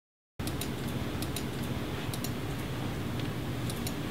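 Keys clatter on computer keyboards.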